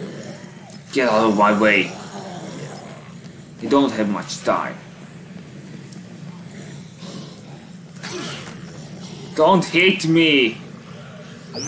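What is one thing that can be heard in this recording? A young man speaks with animation into a close microphone, in short bursts.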